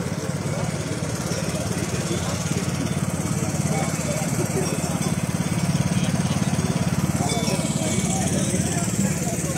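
A crowd of men and women talks outdoors at a distance.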